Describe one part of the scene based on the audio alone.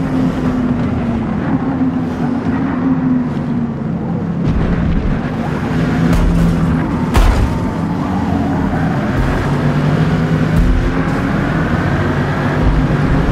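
A car engine roars and revs up and down as gears shift.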